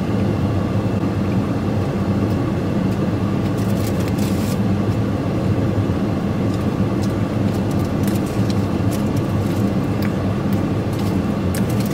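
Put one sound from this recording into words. A man chews food with his mouth close by.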